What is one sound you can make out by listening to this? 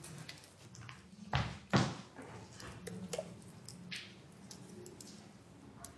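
A woman types on a laptop keyboard.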